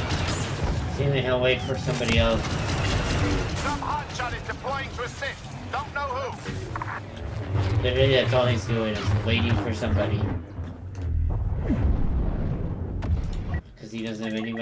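Blaster shots crackle in a noisy battle.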